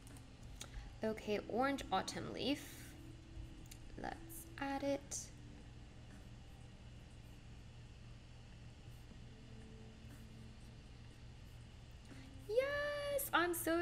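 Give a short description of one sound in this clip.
A young woman speaks softly and close to a microphone.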